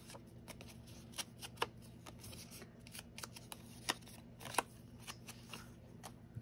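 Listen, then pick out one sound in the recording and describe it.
A foam ink applicator dabs lightly against paper.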